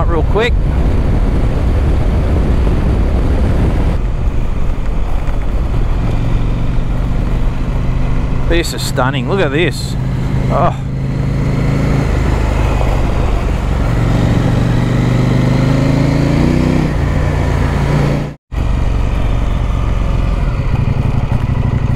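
A motorcycle engine drones steadily as it rides along.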